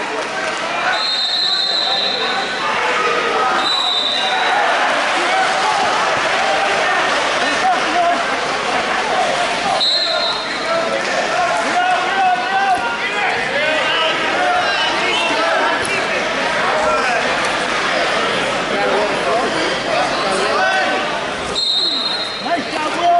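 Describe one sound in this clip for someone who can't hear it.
A referee's whistle blows in short blasts.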